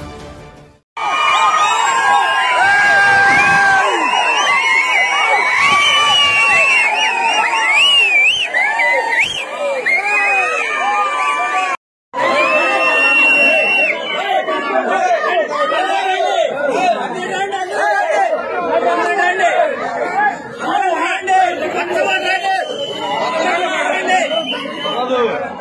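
A large crowd of men shouts and chants loudly outdoors.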